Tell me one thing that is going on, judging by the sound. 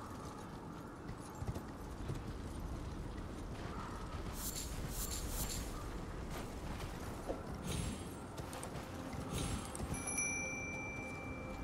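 A horse's hooves clop on rocky ground.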